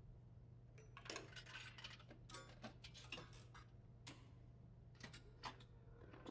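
Switches click on a machine.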